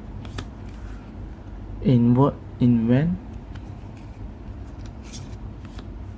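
Stiff playing cards slide and flick past each other between fingers.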